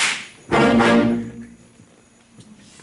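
A concert band strikes a loud chord that rings out and fades in an echoing hall.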